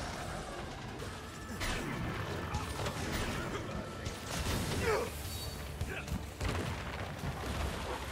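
Blades slash and strike a large creature repeatedly.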